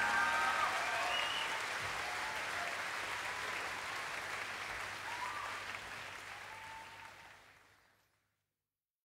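A large crowd applauds, slowly fading away.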